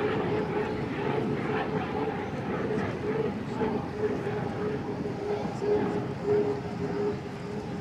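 A racing boat's engine roars steadily at a distance.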